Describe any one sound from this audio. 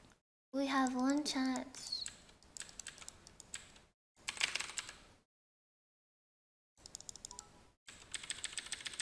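Game spells crackle and clash in quick bursts.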